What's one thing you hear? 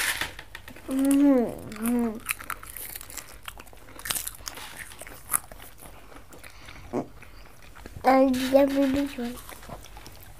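A child speaks with a sing-song voice close by.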